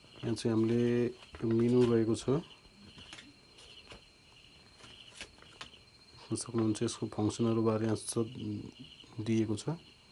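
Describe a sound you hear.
A paper leaflet rustles as it is unfolded.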